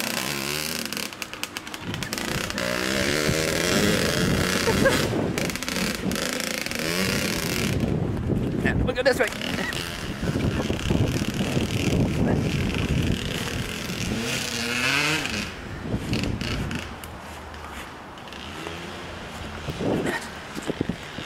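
A dirt bike engine revs up and down loudly nearby.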